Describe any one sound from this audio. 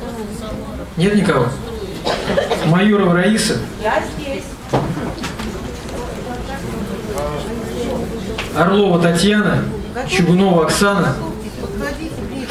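A man speaks through a microphone and loudspeaker.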